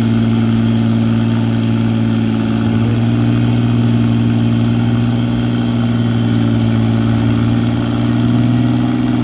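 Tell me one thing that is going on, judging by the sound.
A tractor engine roars loudly and steadily, straining under load.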